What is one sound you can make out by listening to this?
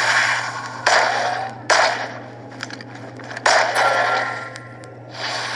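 A rifle fires several loud shots that echo and fade.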